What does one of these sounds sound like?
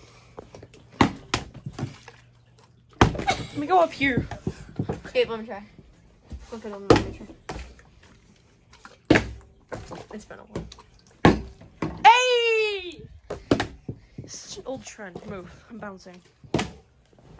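A plastic water bottle thuds down onto a wooden table again and again.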